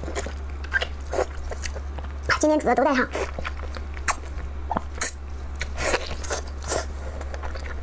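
A young woman chews and slurps food wetly, close to a microphone.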